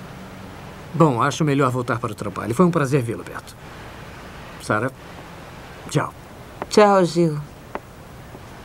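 A man speaks in a low, tense voice indoors.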